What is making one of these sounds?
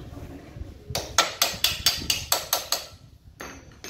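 Metal parts clink and rattle sharply several times.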